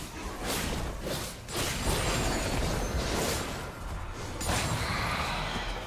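Magic spells whoosh and crackle in a fast fight.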